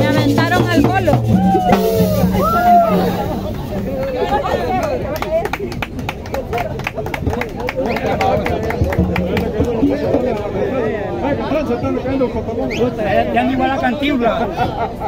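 A crowd of men and women talk and shout nearby outdoors.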